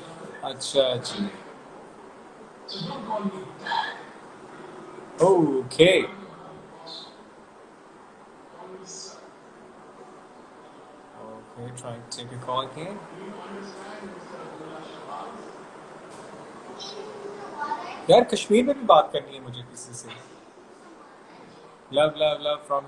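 A man speaks calmly and close to a phone microphone, with pauses.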